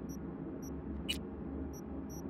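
A short electronic whoosh sounds.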